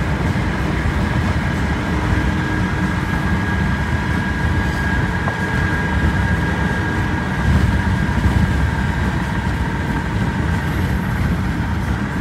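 A car's engine and tyres rumble steadily on the road, heard from inside the moving car.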